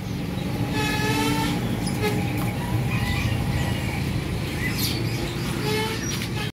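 Caged birds chirp and whistle nearby.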